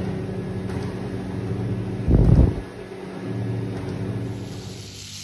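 A treadmill belt whirs and hums steadily.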